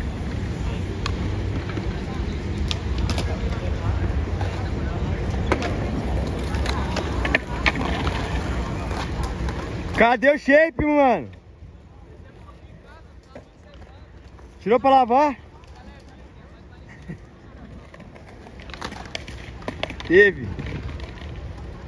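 A skateboard clacks sharply against the ground.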